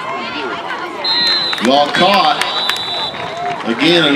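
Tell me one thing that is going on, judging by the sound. A referee's whistle blows a long, steady blast.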